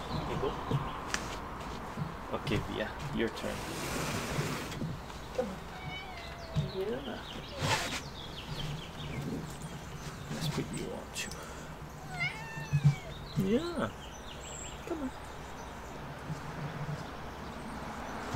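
An elderly man talks calmly to a dog nearby.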